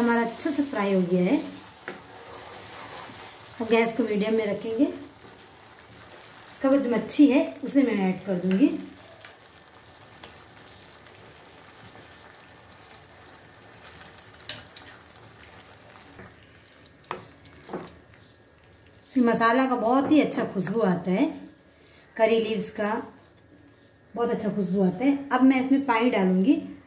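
A ladle scrapes and stirs thick sauce in a metal pan.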